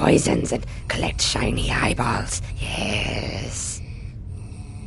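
An old woman speaks in a raspy, cackling voice close by.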